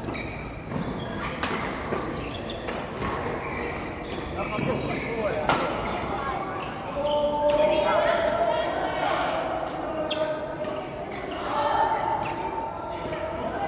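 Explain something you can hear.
Badminton rackets strike a shuttlecock with sharp pops, echoing in a large hall.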